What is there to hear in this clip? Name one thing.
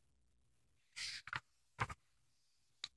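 Paper rustles as a book page is turned.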